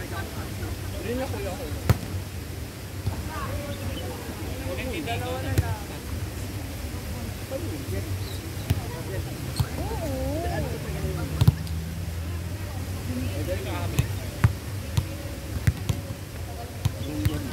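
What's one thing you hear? Young men call out and shout to each other outdoors.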